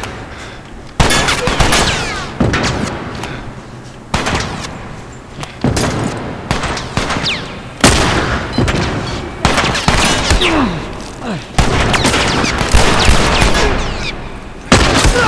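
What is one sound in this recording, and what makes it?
Gunshots blast loudly and echo through a large hall.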